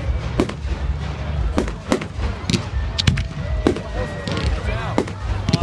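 Fireworks burst with loud, sharp bangs.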